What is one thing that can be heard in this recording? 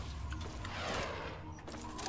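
A rocket whooshes past.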